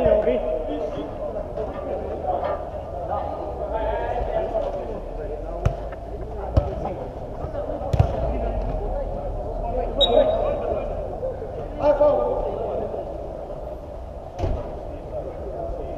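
Men shout to each other during an indoor football game, in a large echoing dome.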